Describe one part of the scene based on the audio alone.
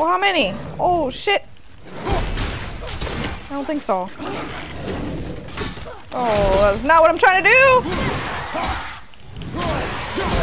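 A heavy axe strikes and clangs in a fight.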